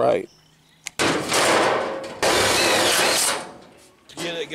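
An impact driver whirs and rattles loudly in bursts.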